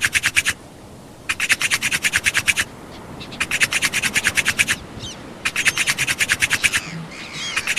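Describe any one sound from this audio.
A wooden stick rubs rapidly back and forth against wood in short bursts.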